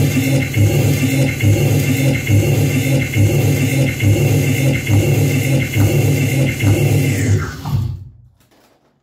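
A pulsing electronic drone with a repeating low beat plays through a loudspeaker, then abruptly cuts off.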